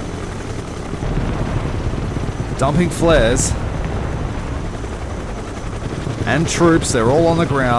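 Engines rumble low and steady.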